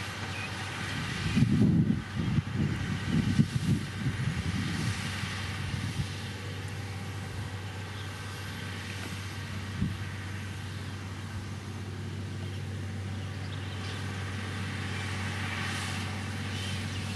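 A diesel engine rumbles steadily at close range.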